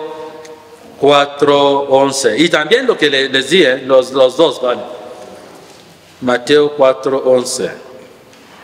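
A man chants in a sung voice through a microphone.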